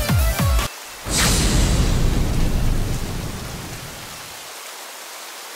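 A machine lands with a loud hissing burst of steam that slowly fades.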